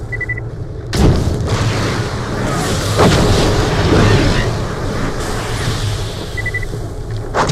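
Fiery explosions burst with a roar.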